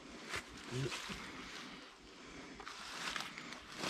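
A cord rustles and slides through hands.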